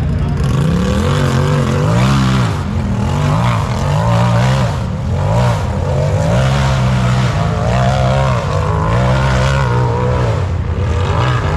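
An off-road buggy engine roars and revs hard as it climbs a dirt hill.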